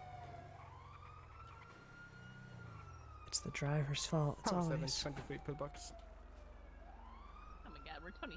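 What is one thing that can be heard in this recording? An ambulance siren wails, slowly rising and falling.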